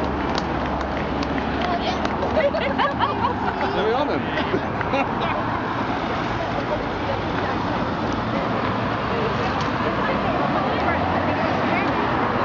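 Traffic rumbles slowly past nearby.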